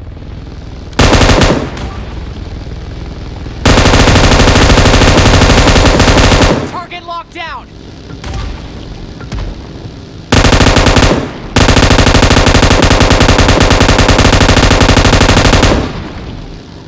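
A heavy machine gun fires in long, rapid bursts.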